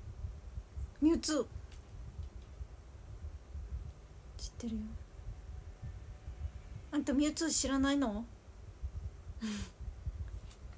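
A young woman speaks softly in brief bursts, close to a microphone.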